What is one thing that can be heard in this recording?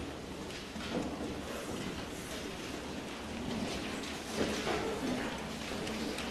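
A girl speaks into a microphone in an echoing hall.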